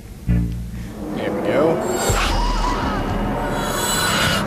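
A shimmering magical whoosh swirls and rises.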